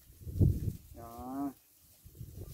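A calf bleats briefly.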